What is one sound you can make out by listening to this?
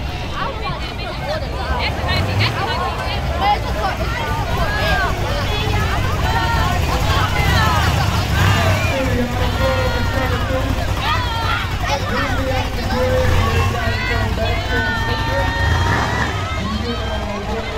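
A V8 sports car rumbles as it rolls slowly by.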